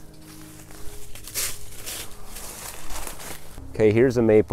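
Footsteps crunch and rustle through dry leaves on the ground.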